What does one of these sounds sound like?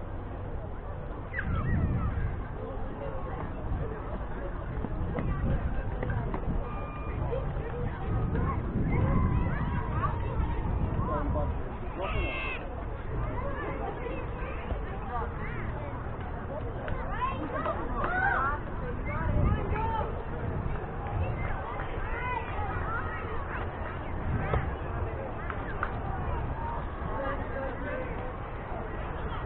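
Young players call out in the distance.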